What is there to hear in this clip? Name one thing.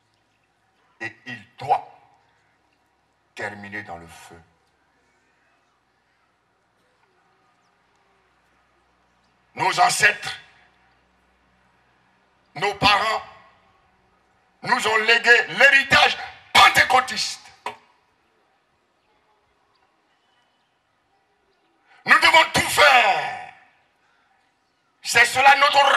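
A man preaches with animation into a microphone through loudspeakers, in short bursts with pauses.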